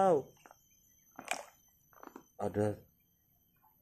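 A small plastic toy splashes softly into a tub of water.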